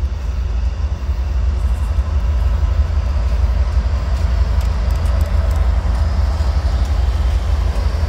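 Wheels clatter and squeal on the rails as the train passes close by.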